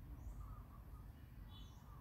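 A monkey gives a soft squeak close by.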